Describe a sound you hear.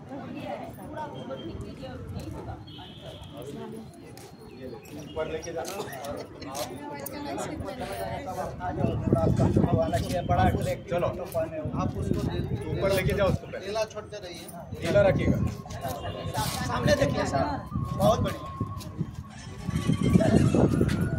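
A crowd of women and men chat and call out outdoors.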